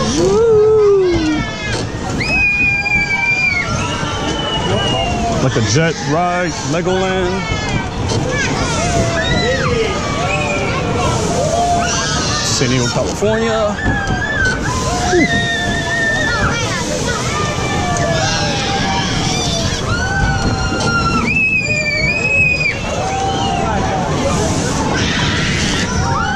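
A spinning ride rumbles and whirs steadily outdoors.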